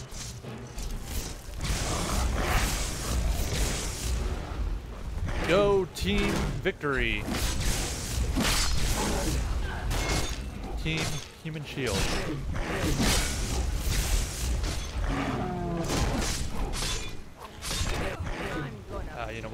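Magic lightning crackles and hisses in sharp bursts.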